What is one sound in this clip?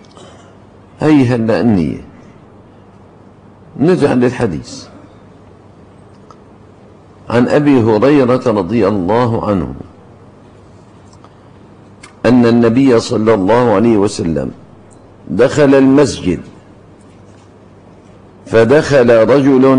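An elderly man speaks into a microphone in slow, measured bursts with pauses between them.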